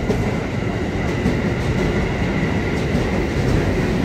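An electric commuter train rolls past a platform.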